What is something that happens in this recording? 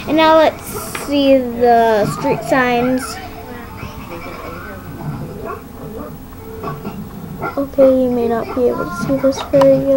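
Plastic toy bricks click and rattle on a table.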